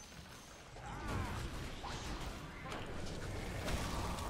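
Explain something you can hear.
Game battle effects crackle and whoosh.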